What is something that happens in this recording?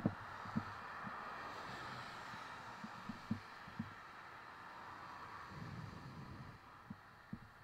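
A car drives past on a wet road, its tyres hissing.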